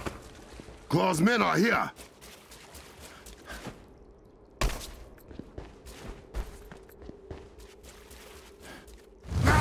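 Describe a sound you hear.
Footsteps run across stone.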